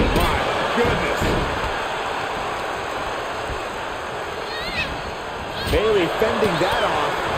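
A large crowd cheers steadily in a big arena.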